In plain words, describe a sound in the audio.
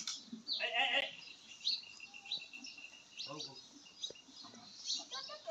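Small birds chirp repeatedly close by, outdoors.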